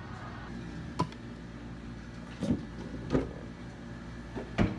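Plastic cups are set down on a counter with light knocks.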